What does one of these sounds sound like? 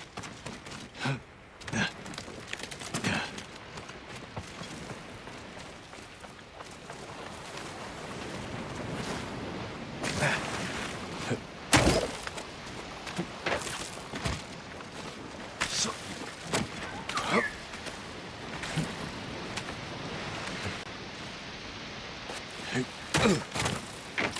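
Hands and feet scrape and thud on rock as a climber clambers up a cliff.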